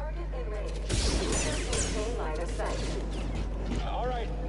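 A laser sword hums and crackles.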